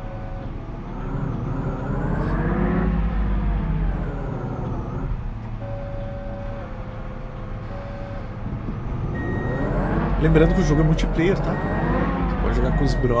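A machine engine revs up and down.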